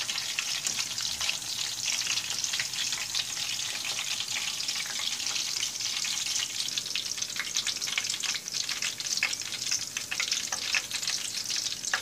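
A metal fork clinks against a pan.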